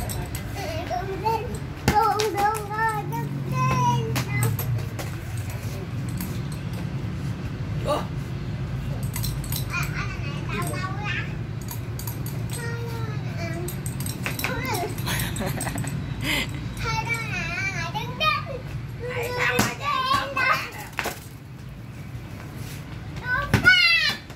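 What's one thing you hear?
A young child babbles and squeals excitedly nearby.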